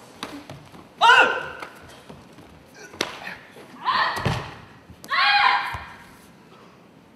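A man shouts sharp, loud cries.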